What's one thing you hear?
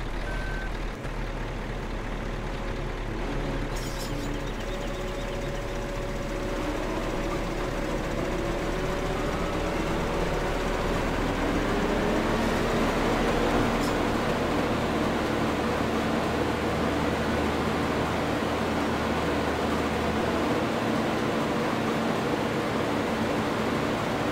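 A combine harvester engine drones steadily and grows louder.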